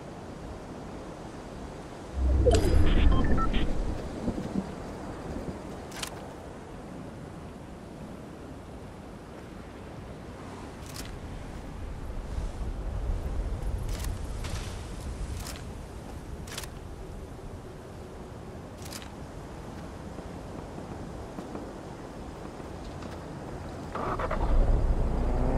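Footsteps patter on grass.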